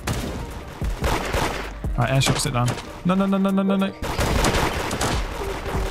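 Video game gunshots fire in quick bursts.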